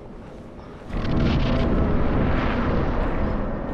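A fog wall roars with a deep rushing sound.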